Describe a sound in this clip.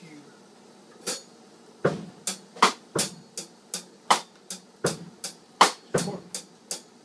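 A drummer hits drums and cymbals in quick, sharp strokes.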